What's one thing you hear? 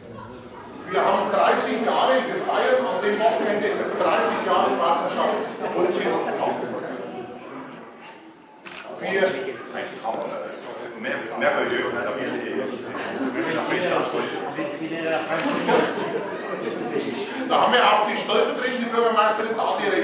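An older man speaks with animation in an echoing room.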